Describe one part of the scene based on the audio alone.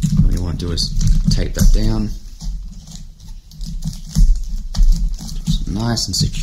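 A young man talks calmly into a nearby microphone.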